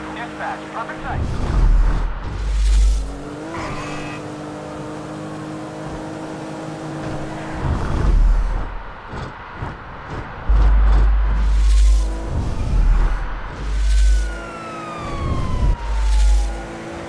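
A car engine hums steadily as a car drives along a road.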